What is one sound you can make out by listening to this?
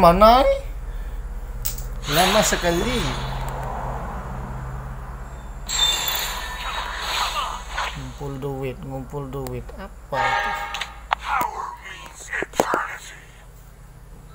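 Electronic game sound effects chime and swoosh.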